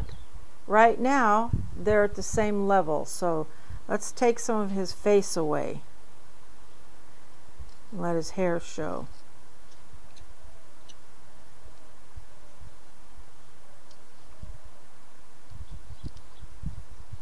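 A small knife scrapes and shaves wood.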